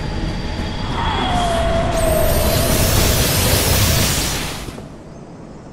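A bright beam of light blasts with a loud rushing roar.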